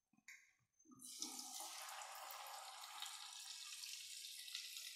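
Dough sizzles as it fries in hot oil.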